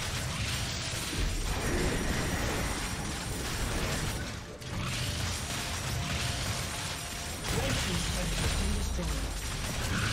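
Game characters clash with spell and weapon impact sounds.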